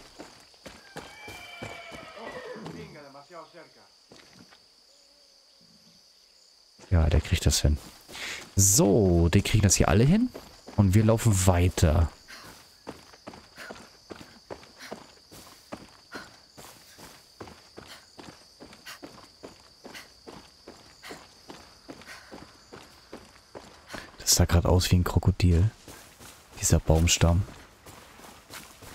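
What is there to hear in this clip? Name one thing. Footsteps crunch steadily on a dirt road.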